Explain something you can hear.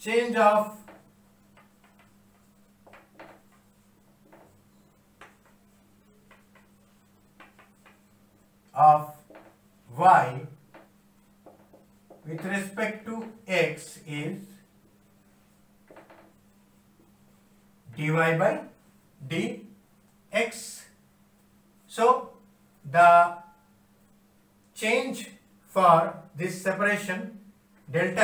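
A young man speaks calmly, explaining in short bursts.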